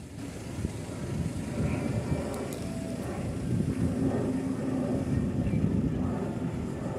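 A jet airliner roars overhead with a steady low rumble.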